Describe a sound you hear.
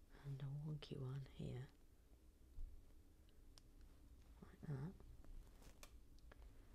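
Small plastic pieces click and tap against each other.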